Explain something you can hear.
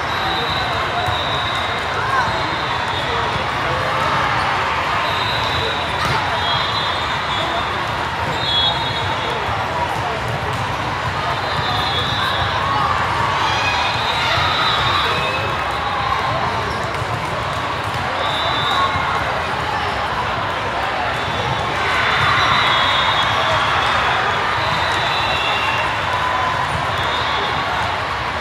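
A volleyball thumps as players pass it.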